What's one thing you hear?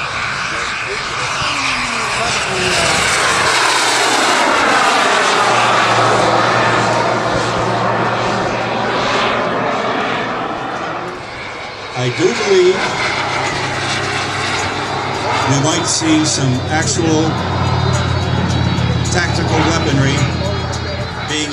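A jet engine roars loudly overhead, its pitch sweeping down as it passes.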